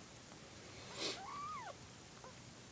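A kitten gives a short, high mew.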